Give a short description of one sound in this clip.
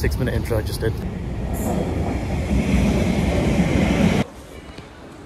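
A train rushes past with a loud roar.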